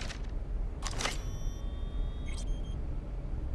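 A portable computer beeps and chimes as it opens.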